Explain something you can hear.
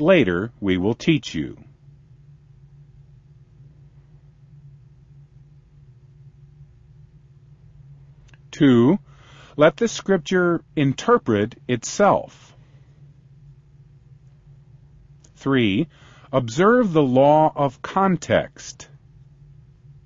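A man speaks calmly and clearly, close to a microphone, in short phrases with pauses between them.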